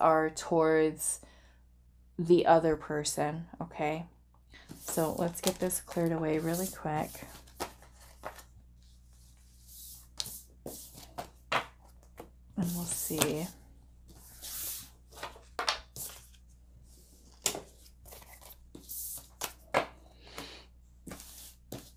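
Cards slide and tap softly on a table.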